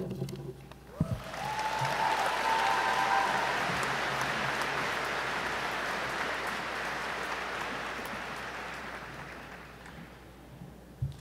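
A large crowd applauds in a big echoing hall, then the applause slowly fades.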